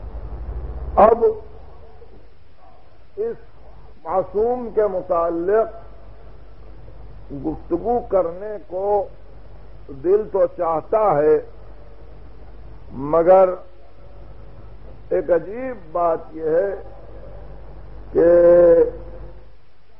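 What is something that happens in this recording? A man speaks slowly in short phrases, with pauses.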